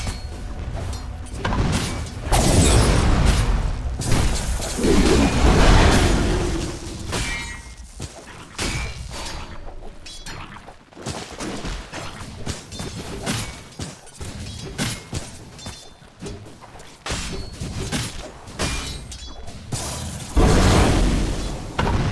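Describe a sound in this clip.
Game spells burst and crackle in a loud fight.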